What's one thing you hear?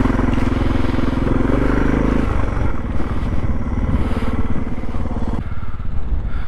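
A motorcycle engine rumbles up close.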